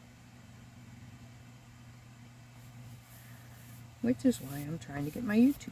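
Paper rustles softly as hands press and smooth it down.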